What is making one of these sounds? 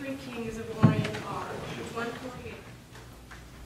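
A woman speaks into a microphone in a room with a slight echo.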